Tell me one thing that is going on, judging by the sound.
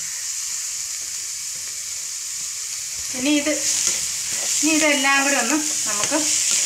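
Chopped onions sizzle steadily in a hot pan.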